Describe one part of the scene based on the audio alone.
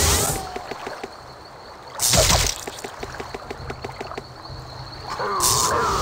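Blades clash repeatedly in a fight.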